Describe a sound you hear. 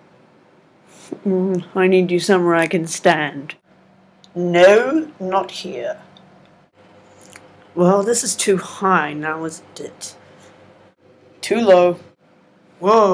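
A teenage boy talks casually close to the microphone.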